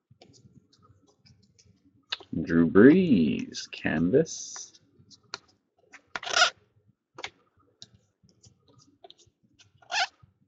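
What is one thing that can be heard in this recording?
Stiff cards flick and rustle as they are leafed through by hand, close by.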